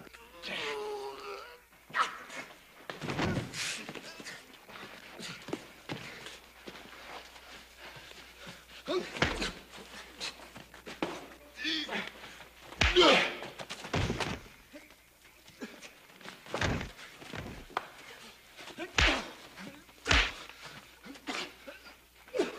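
A man grunts and groans with effort.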